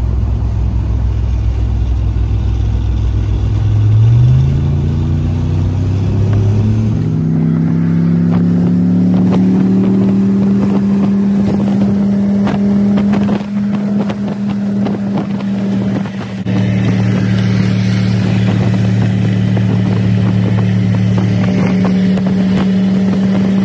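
A car engine drones steadily, rising in pitch as it speeds up.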